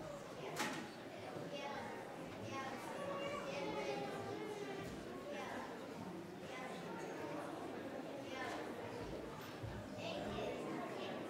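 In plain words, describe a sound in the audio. Many men and women chat at once in a large echoing hall.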